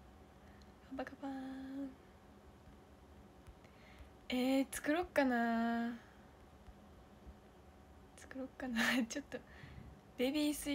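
A young woman speaks close to a microphone in bursts, with pauses.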